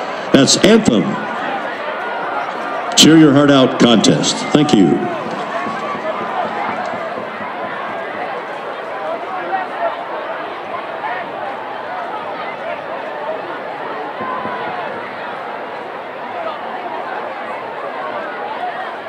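A crowd of people chatters and cheers outdoors.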